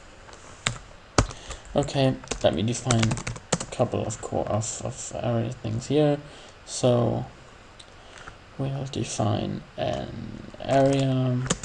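Keys click on a computer keyboard.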